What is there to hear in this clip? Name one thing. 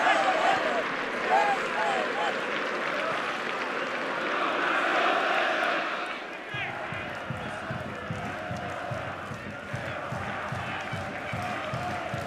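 Fans in a stadium crowd chant together.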